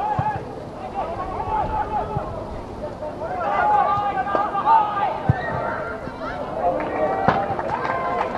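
A football thuds when it is kicked.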